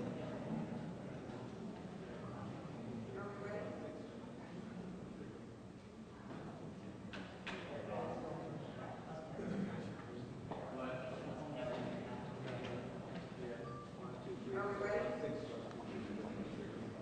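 A man speaks to a gathering in a large echoing hall.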